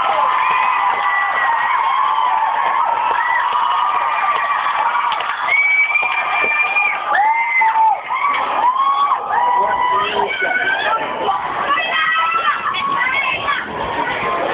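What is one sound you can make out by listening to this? A band plays loud live music in a large hall.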